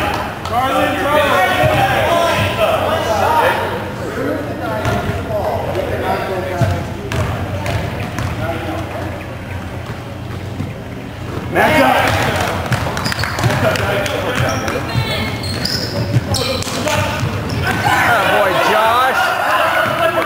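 Boys shout and call out in a large echoing gym.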